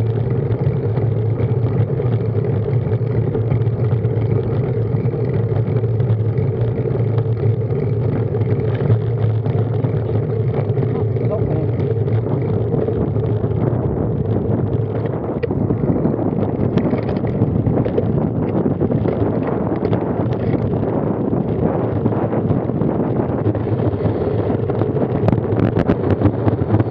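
Wind rushes and buffets the microphone as a road bike rides along outdoors.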